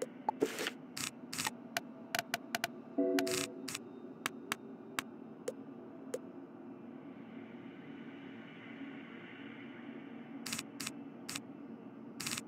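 Short interface clicks sound as cards are picked.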